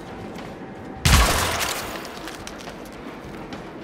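A loud blast bursts and crumbles into falling debris.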